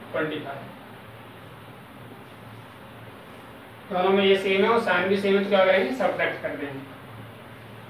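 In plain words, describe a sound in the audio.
A man speaks in a calm, teaching tone.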